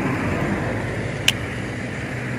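A fishing reel clicks briefly.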